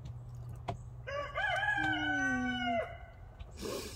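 A goat bleats nearby.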